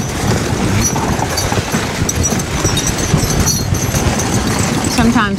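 Horse hooves thud steadily on packed snow.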